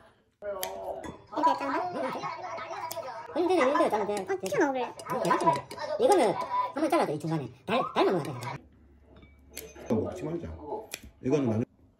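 Kitchen scissors snip through food.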